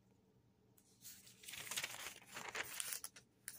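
Paper pages rustle as a book page is turned.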